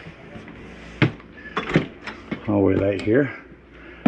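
A sliding door rattles and bumps open.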